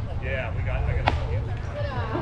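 A ball smacks into a glove with a sharp pop.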